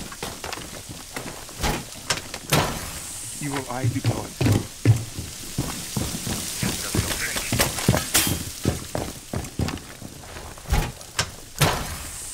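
A small device clanks as it is set down.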